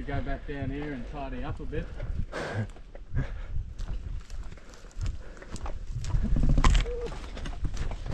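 Footsteps crunch on dry sandy ground and leaves.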